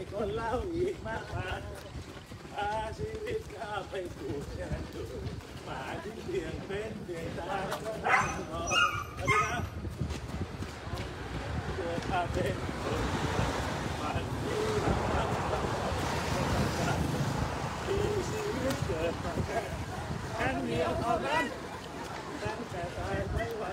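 Footsteps of a group of runners patter on pavement.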